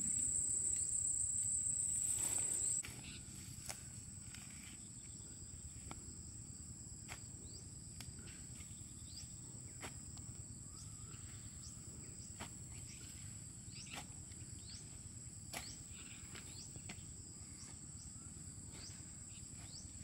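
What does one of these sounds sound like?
A hoe chops into soil again and again.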